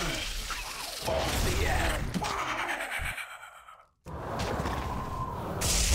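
Lightning spells crackle and zap.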